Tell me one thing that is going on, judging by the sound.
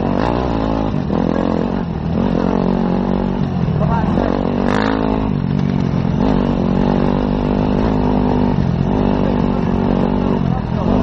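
A motorcycle engine drones steadily up close, its pitch rising and falling with the throttle.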